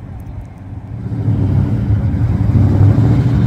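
A classic car's engine rumbles as it drives past.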